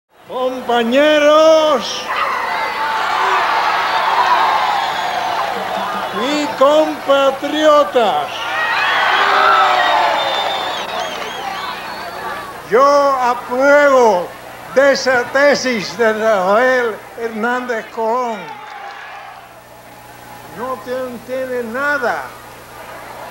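An elderly man speaks forcefully into a microphone over a loudspeaker.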